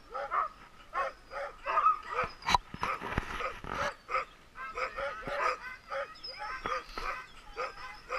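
Many dogs bark and yelp excitedly outdoors.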